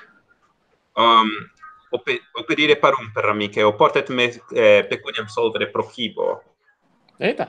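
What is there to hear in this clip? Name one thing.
A young man speaks over an online call.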